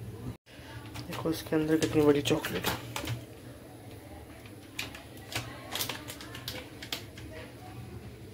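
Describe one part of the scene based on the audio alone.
A plastic wrapper crinkles and rustles as hands handle it.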